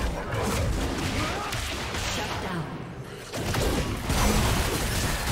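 Video game spell effects crackle and blast during a fight.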